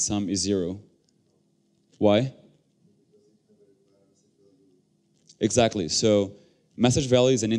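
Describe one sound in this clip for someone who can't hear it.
A young man speaks calmly into a microphone in bursts.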